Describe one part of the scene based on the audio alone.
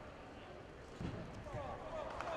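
Bodies thump onto a wrestling mat.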